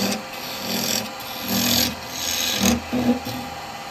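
A chisel cuts and shaves spinning wood on a lathe in loud rasping bursts.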